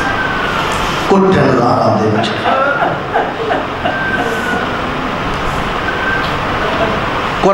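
A man speaks with emotion into a microphone, heard through loudspeakers in a reverberant space.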